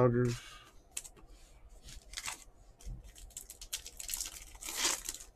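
Hands crinkle and tear open a foil card pack.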